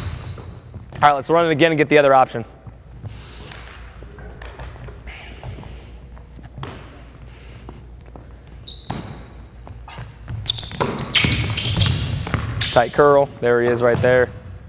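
A man calls out loudly in a large echoing gym.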